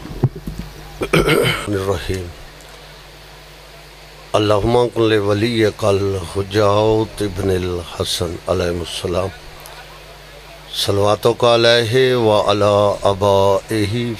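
A middle-aged man speaks loudly and with feeling into a microphone over a loudspeaker, with a slight echo outdoors.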